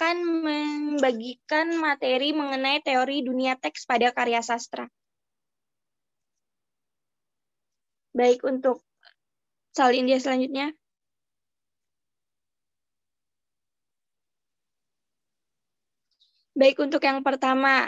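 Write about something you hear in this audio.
A young woman speaks calmly over an online call, pausing between phrases.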